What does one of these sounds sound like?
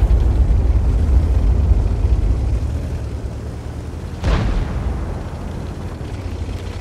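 A heavy tank engine rumbles low and steadily as the tank rolls forward.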